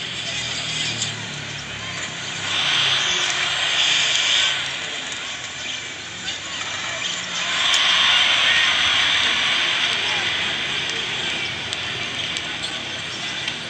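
Sneakers squeak on a court.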